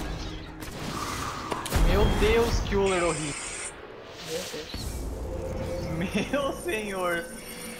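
Game sound effects whoosh and clash.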